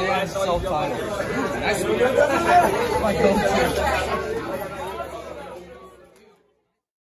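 A crowd of young people chatters loudly.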